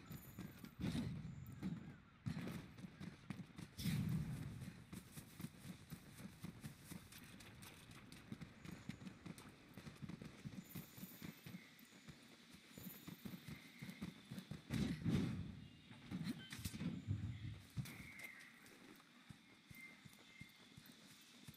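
Footsteps run through rustling undergrowth.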